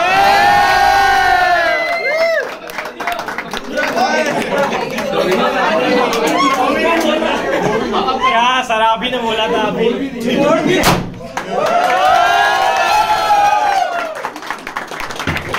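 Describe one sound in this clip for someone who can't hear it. A group of young men and women sing together.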